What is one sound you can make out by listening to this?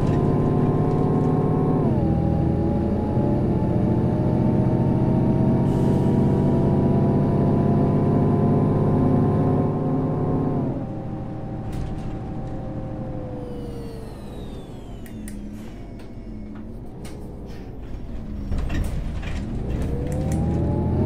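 A bus engine drones loudly, then drops off and revs up again.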